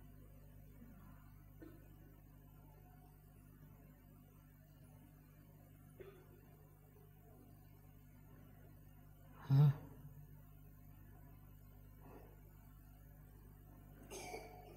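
An elderly woman speaks slowly and quietly into a microphone.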